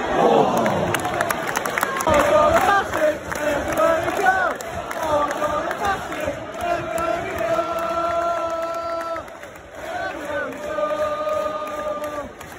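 A large stadium crowd chants and sings loudly, echoing around the stands.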